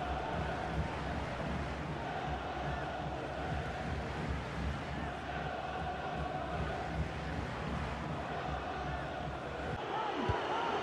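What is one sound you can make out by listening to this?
A large stadium crowd roars and chants.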